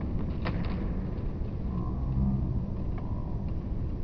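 A skateboard clacks on a concrete ramp.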